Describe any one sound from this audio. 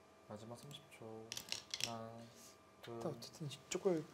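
A go stone clicks down onto a wooden board.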